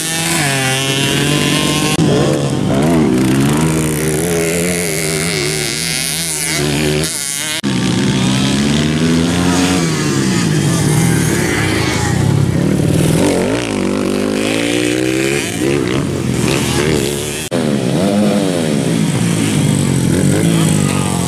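Dirt bike engines rev loudly, rising and falling in pitch.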